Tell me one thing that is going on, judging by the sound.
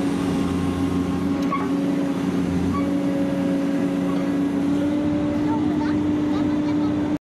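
An excavator's diesel engine rumbles steadily close by.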